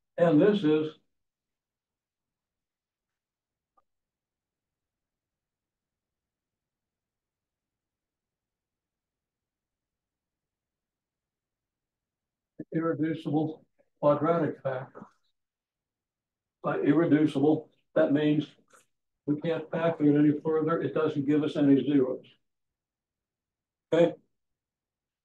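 An elderly man speaks calmly, as if explaining, with pauses.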